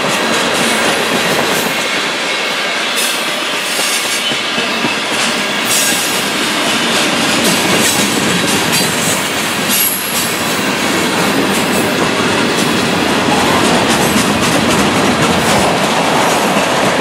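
Steel wheels clack and squeal over the rail joints.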